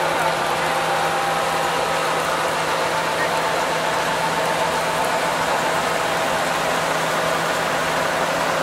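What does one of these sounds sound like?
Grain pours from a spout into a trailer with a steady rushing hiss.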